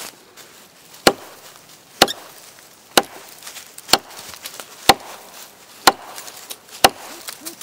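A heavy blade chops into a wooden log with sharp, regular thuds.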